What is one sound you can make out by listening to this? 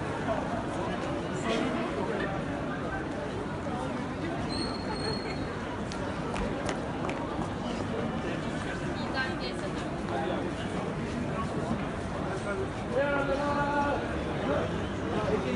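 A crowd murmurs steadily outdoors.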